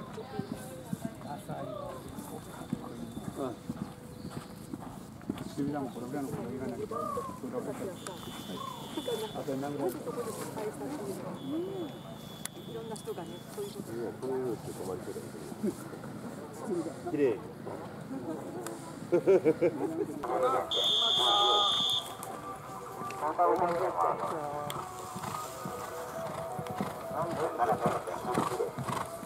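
Adults talk nearby outdoors.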